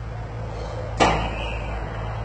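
A metal gate clangs shut with a loud bang.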